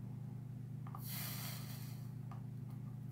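A soldering iron hisses briefly against metal.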